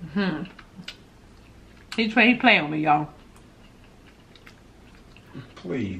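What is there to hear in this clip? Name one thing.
A woman chews food softly.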